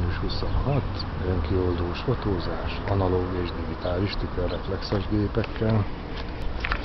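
A middle-aged man talks close up, in a relaxed way.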